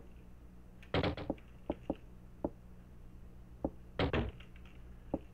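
A door creaks open and shuts.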